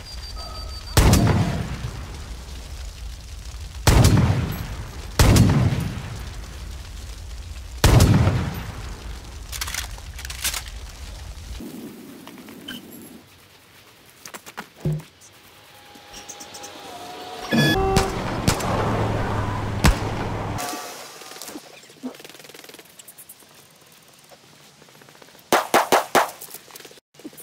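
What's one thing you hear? Pistol shots ring out loudly, one at a time, with a sharp echo.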